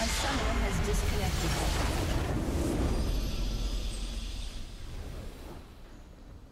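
A loud magical blast booms and rumbles in a video game, then fades away.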